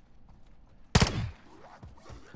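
A single gunshot bangs loudly.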